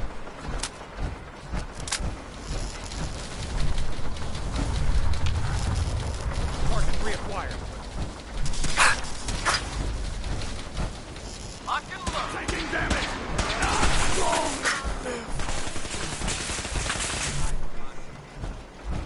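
Heavy metal footsteps clank and thud on a hard floor.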